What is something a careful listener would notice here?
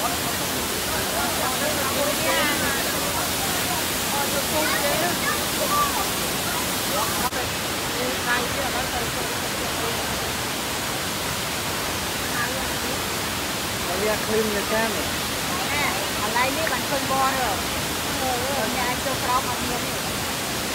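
A waterfall rushes and splashes steadily.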